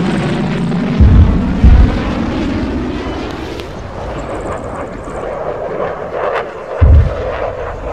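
Explosions boom with deep thuds.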